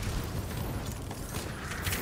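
An explosion bursts with crackling flames.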